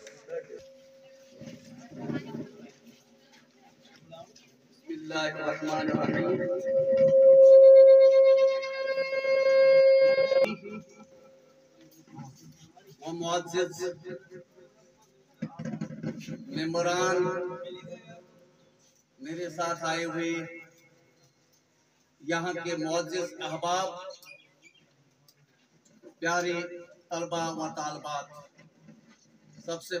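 An elderly man speaks through a microphone and loudspeaker in bursts, with pauses between phrases.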